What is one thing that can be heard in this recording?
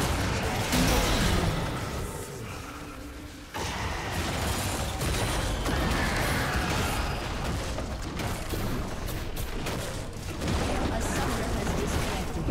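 Spell effects whoosh and crackle in a fast game fight.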